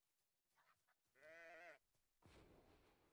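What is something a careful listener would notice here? A wolf snarls as it attacks.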